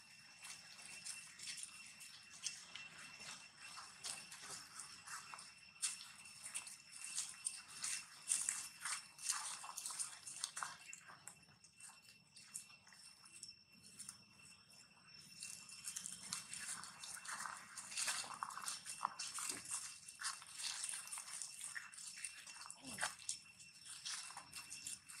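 Dry leaves crunch as monkeys walk over grass.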